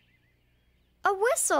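A young child speaks briefly and brightly.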